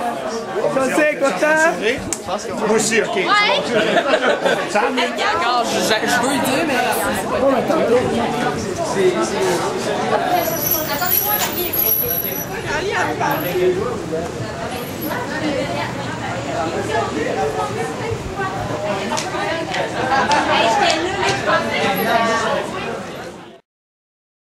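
A crowd of young people chatters loudly nearby.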